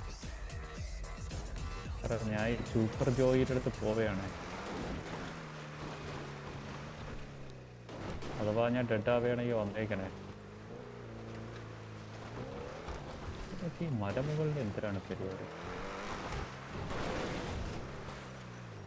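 Tyres crunch over gravel.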